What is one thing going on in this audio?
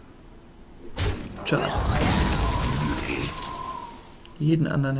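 Card game sound effects crash and chime.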